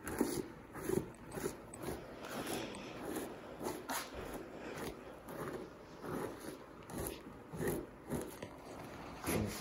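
A blade scrapes rhythmically against an animal hide.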